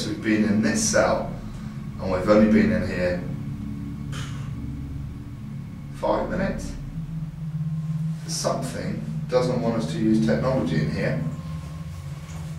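A young man speaks quietly and tensely, close by.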